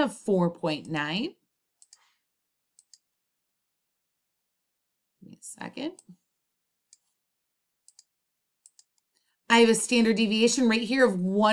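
A young woman talks calmly close to a microphone, with pauses.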